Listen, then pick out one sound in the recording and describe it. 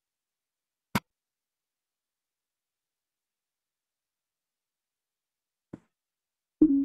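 A short click sounds as a game menu opens and closes.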